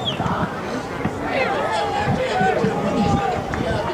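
Young men shout and cheer outdoors, some distance away.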